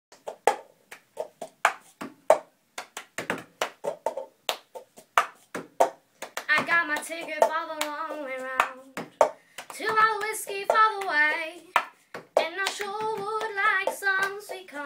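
A cup taps and bangs on a table in a quick rhythm.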